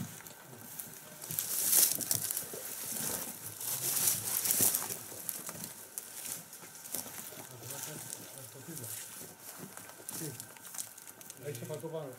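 Footsteps crunch on dry grass and rubble.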